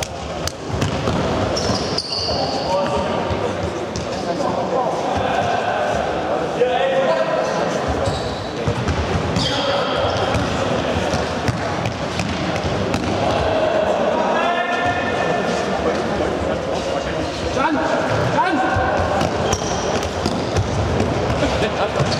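Boys shout and call out across a large echoing hall.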